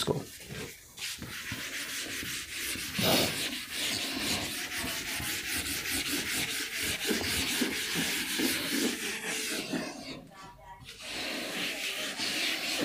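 A duster rubs across a chalkboard.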